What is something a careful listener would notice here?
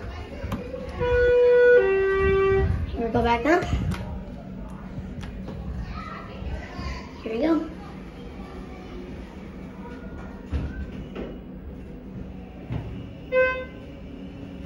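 An elevator chime rings in two tones.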